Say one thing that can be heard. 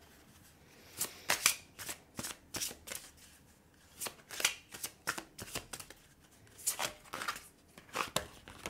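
Cards are shuffled with quick, crisp flicks.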